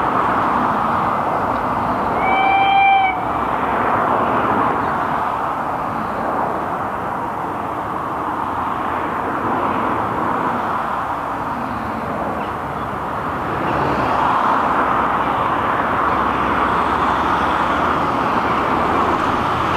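Wind blows steadily across open fields outdoors.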